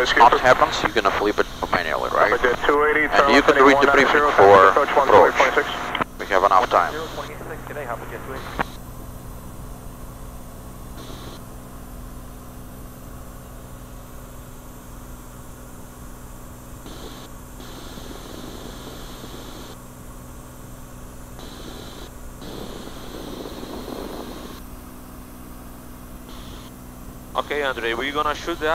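A man speaks close by, with animation.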